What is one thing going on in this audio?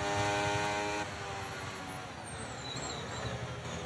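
A racing car engine drops to a lower, rougher note as the car brakes.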